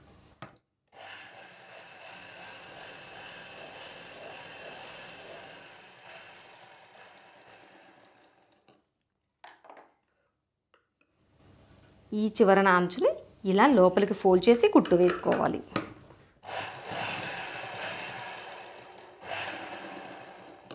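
A sewing machine runs steadily, stitching fabric.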